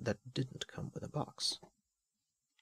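A plastic cover rustles and clicks as it is handled.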